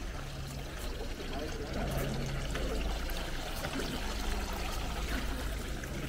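Water trickles and splashes from several spouts into a stone basin.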